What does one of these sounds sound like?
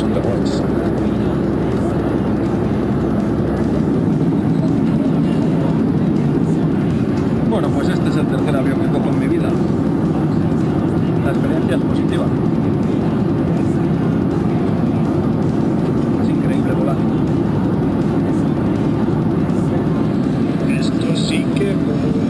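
A plane's engines roar steadily inside the cabin.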